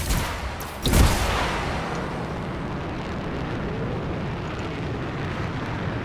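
A jet thruster roars steadily.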